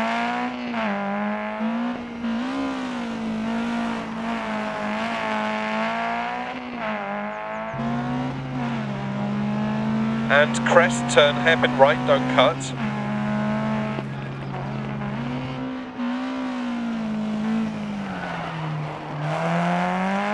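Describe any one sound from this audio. A rally car engine revs and roars, rising and falling as it shifts gears.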